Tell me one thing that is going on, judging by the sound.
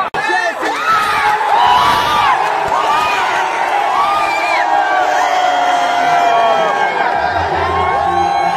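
A young man close by shouts with excitement.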